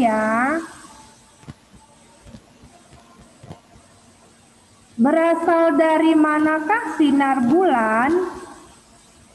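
A young child speaks in a high voice through an online call.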